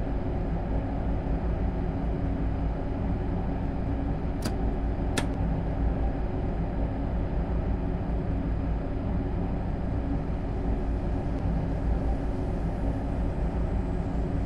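A train rumbles steadily along the track at speed.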